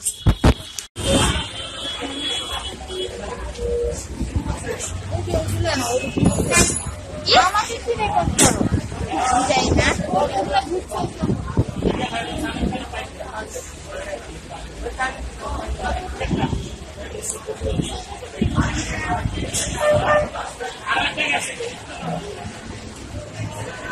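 A crowd of people chatters in a busy, echoing room.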